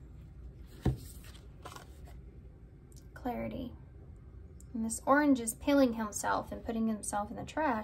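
A card is set down on a table with a soft tap.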